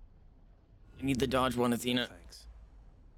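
A young man speaks briefly and animatedly into a close microphone.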